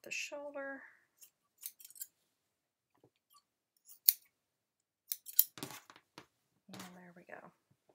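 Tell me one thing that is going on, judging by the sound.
Scissors snip through fabric.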